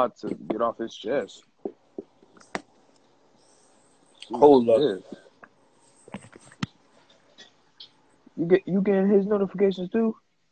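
A young man talks casually over an online call.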